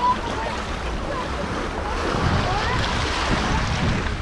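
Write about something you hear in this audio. Water trickles over pebbles at the shore.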